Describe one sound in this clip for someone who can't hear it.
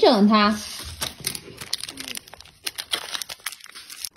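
A plastic bag crinkles as it is squeezed.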